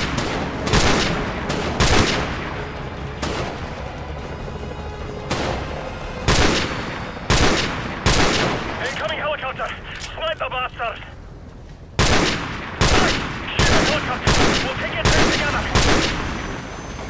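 Rifle shots crack out again and again and echo.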